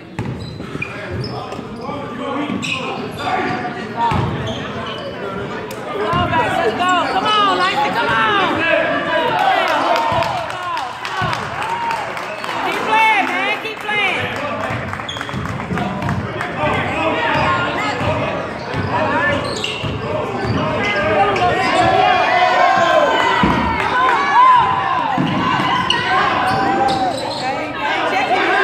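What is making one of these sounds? A basketball thumps as it bounces on the court.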